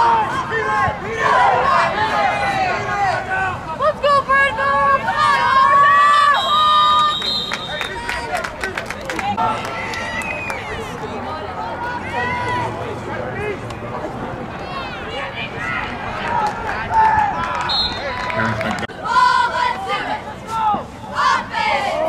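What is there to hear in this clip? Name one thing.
Young men shout across an open field.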